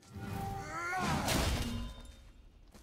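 An axe smashes through a crumbling stone wall with a loud crash.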